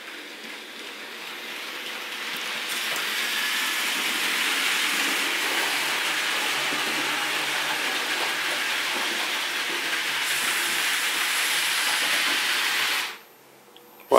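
A model train whirs and rattles along its tracks.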